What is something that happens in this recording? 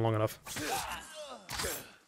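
A sword strikes metal with a clang.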